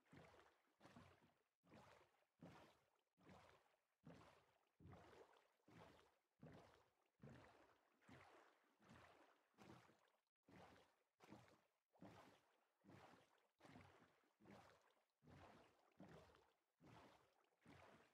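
Oars splash through water in a steady rhythm.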